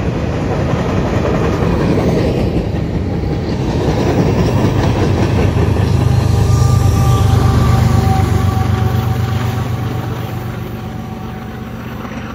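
A freight train rumbles and clatters along the tracks close by.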